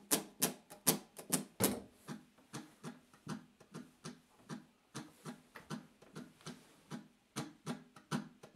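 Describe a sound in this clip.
An acoustic guitar body is slapped in a steady, quick rhythm.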